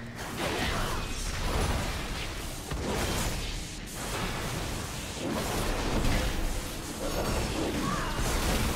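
Fantasy battle effects crackle, whoosh and clash.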